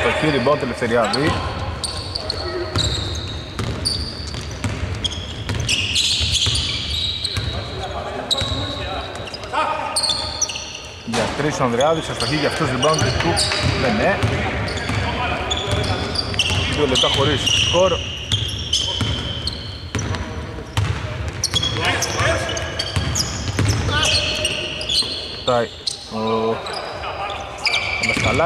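A basketball bounces on a hardwood court in a large echoing hall.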